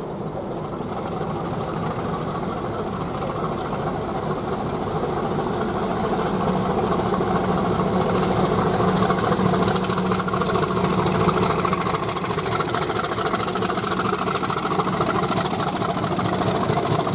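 A Class 50 diesel locomotive approaches with its English Electric engine growling and grows louder as it passes.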